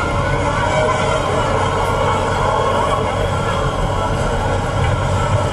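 Tyres roll over the road with a steady rumble.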